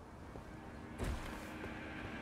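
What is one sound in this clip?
Water splashes under footsteps.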